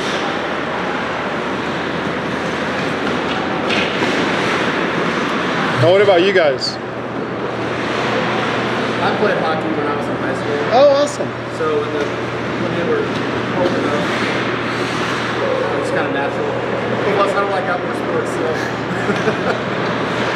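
Ice skates scrape and hiss across an ice rink in a large echoing hall.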